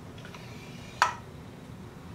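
A metal part clanks once.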